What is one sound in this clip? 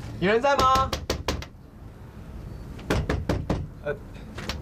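Knuckles knock on a wooden door.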